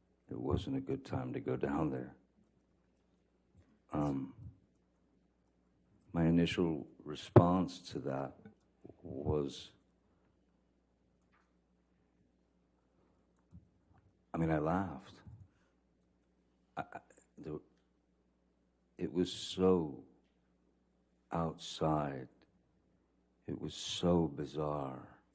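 A middle-aged man speaks calmly into a microphone, pausing often.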